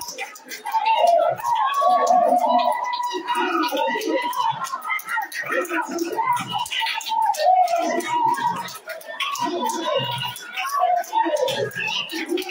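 A crowd of women pray aloud together, many voices overlapping with fervour.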